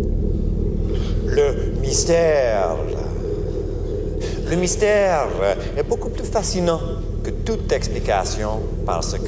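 A man cries out in long, wavering calls.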